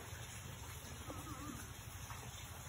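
A toddler babbles faintly nearby.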